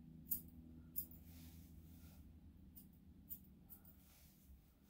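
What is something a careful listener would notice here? Scissors snip through fur in short, sharp clicks.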